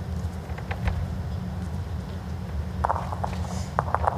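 A bowl rolls softly across a carpet.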